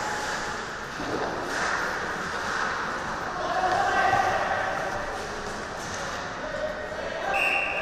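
Skates scrape and hiss on ice in a large echoing hall.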